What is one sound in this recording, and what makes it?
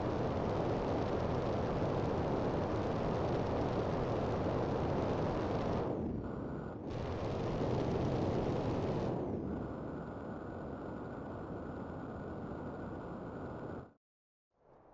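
A jetpack roars steadily, with bursts of louder thrust.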